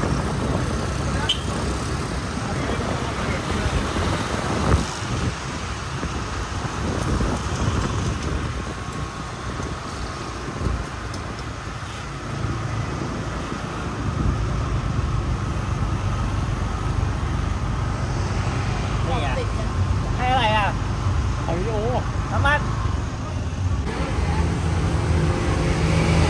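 Busy street traffic rumbles steadily outdoors.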